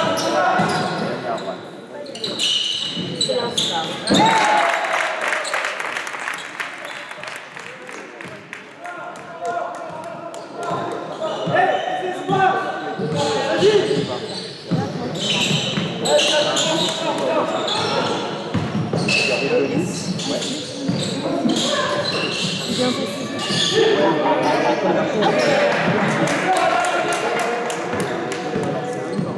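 A basketball bounces on a hard court floor.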